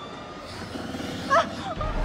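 A young woman speaks urgently close by.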